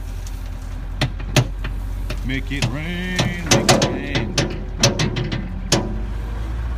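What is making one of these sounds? A metal bucket clanks sharply a few times.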